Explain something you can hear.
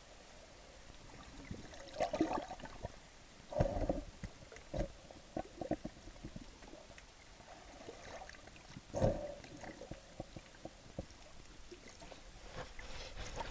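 Water gurgles and bubbles in muffled bursts underwater.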